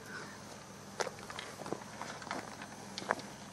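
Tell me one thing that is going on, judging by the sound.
Footsteps scuff softly on gravel.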